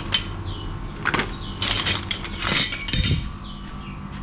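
Metal tools clink and clatter on a hard floor.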